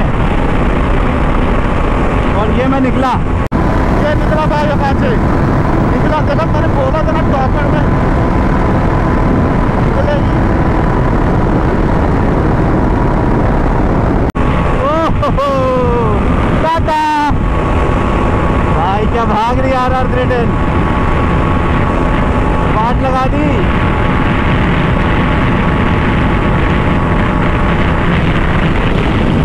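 A motorcycle engine drones steadily and revs up and down.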